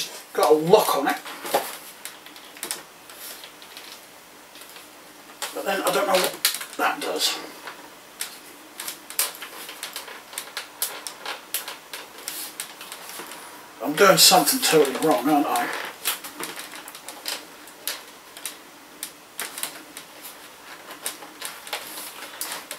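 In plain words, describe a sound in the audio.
Plastic parts click and snap.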